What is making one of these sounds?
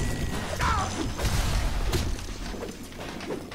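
A blast booms and rumbles, then slowly dies away.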